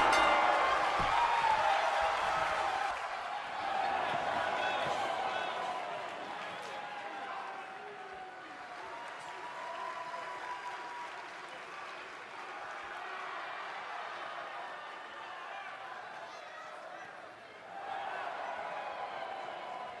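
A large crowd cheers loudly in a big echoing arena.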